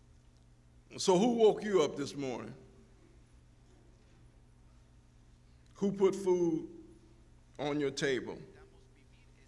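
A man speaks slowly through a microphone in a large echoing hall, with long pauses.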